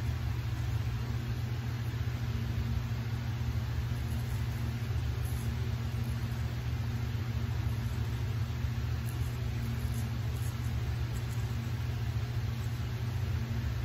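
A straight razor scrapes through stubble on a cheek.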